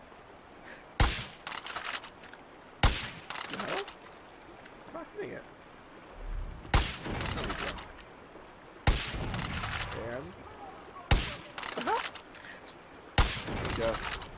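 Rifle shots crack loudly, one after another at intervals.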